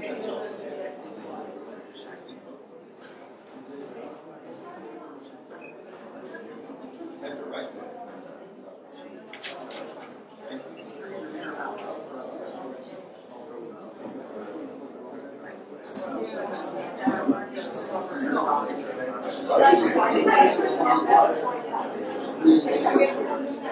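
Many men and women chatter at once in a room, getting louder toward the end.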